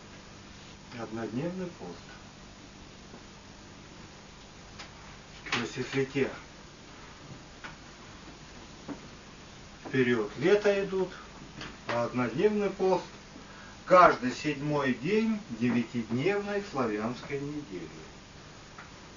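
A man speaks calmly in short phrases and reads aloud.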